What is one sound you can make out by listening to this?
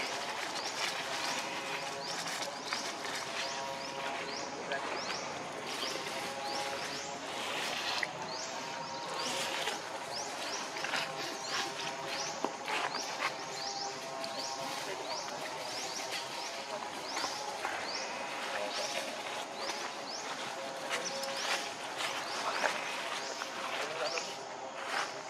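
Dry leaves rustle and crackle as monkeys move over them.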